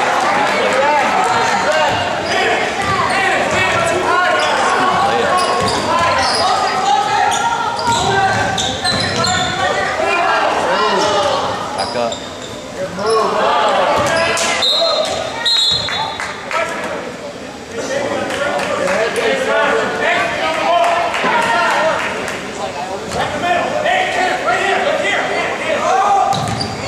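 Sneakers squeak on the hardwood court.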